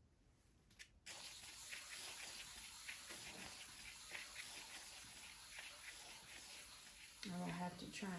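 Plastic sheeting crinkles and rustles under a gloved hand.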